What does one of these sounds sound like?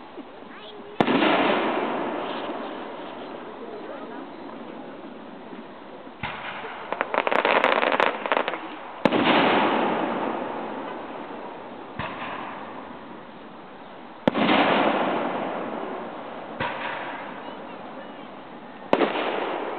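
Aerial firework shells burst with loud booms that echo and roll away.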